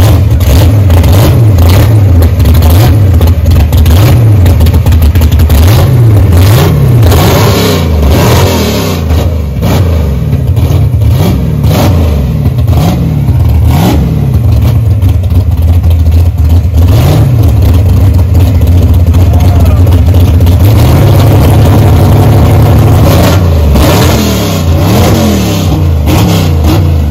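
A loud muscle car engine idles close by with a deep, lumpy rumble.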